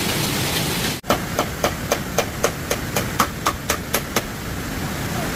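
Bamboo poles knock together.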